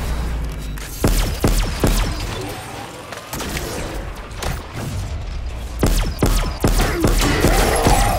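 A gun fires in sharp bursts.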